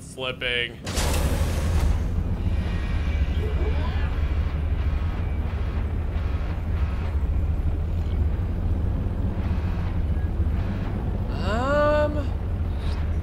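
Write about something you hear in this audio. An underwater vehicle's engine hums low and steady.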